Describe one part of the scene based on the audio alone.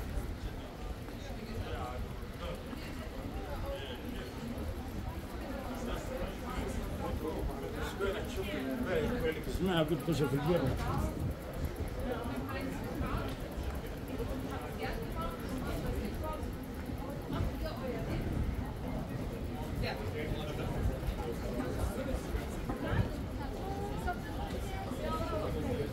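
Many people chatter and murmur around outdoors.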